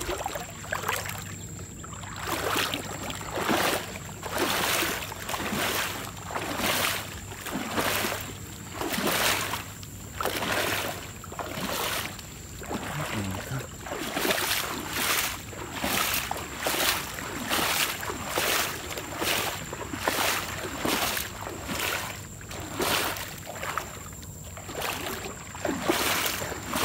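Water laps and splashes gently in steady repeated bursts.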